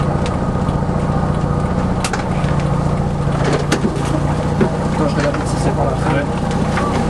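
A car rolls slowly over a paved road.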